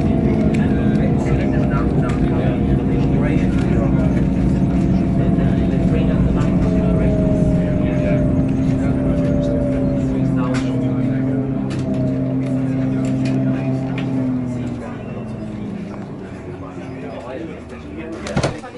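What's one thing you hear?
Aircraft propeller engines drone loudly, then wind down.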